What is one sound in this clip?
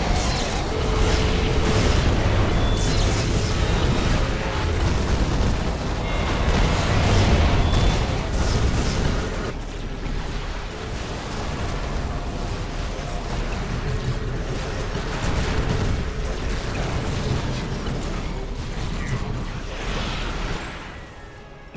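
Rapid gunfire crackles in a fierce battle.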